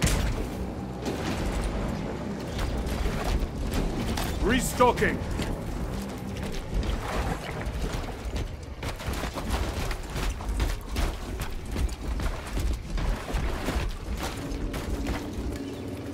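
Heavy armored footsteps thud and clank on wet ground.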